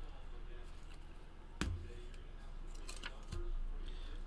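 Plastic card sleeves rustle and click in hands.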